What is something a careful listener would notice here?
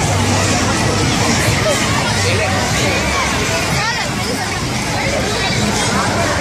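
A large outdoor crowd of men and women chatters all around.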